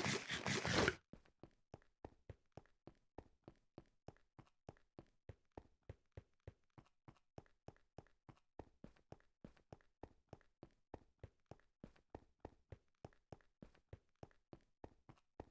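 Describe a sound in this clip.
Footsteps crunch steadily and quickly on stone.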